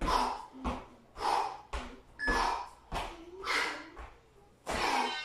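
A man breathes hard in sharp bursts.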